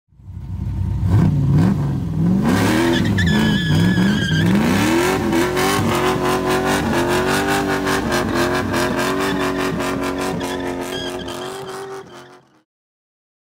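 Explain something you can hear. An engine revs up and down, then roars at a steady high pitch.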